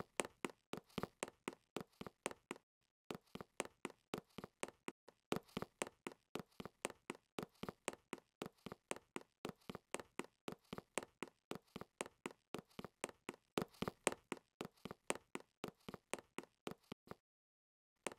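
Quick footsteps patter steadily as a game character runs.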